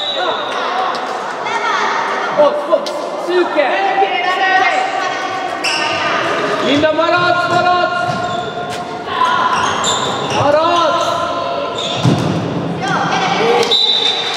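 A ball bounces on the floor in an echoing hall.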